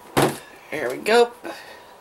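Plastic toys knock softly on a table.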